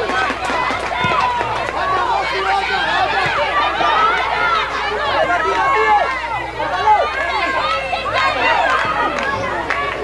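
A football thuds as a child kicks it.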